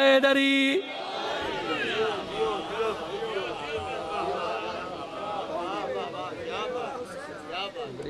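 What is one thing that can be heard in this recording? A crowd of men chant together in response.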